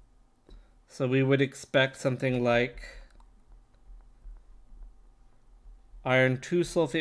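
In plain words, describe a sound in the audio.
A man speaks calmly through a microphone, close up.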